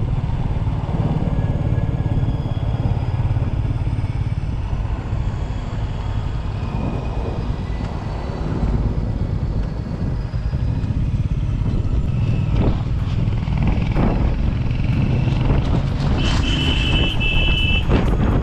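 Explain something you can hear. Wind buffets against the rider.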